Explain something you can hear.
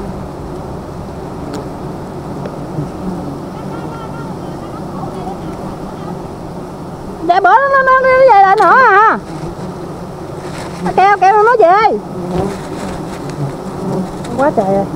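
Bees buzz steadily all around, close by.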